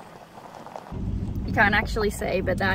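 A young woman talks with animation close by inside a moving car.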